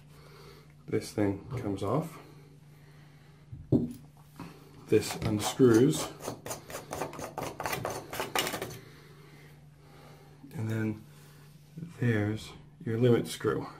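A hand handles a metal shower valve handle with faint scrapes.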